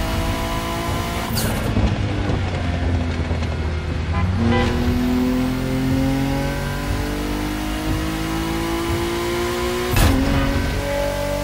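Rain patters on a car windscreen.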